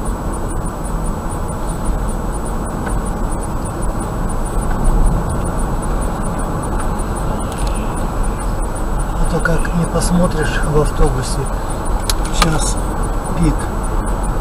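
A car's tyres rumble steadily on a paved road.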